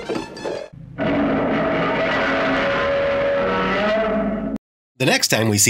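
A monster roars loudly and long.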